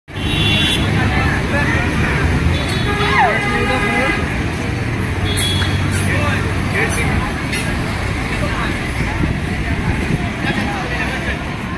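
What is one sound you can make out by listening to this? A crowd of people chatters outdoors in a busy open area.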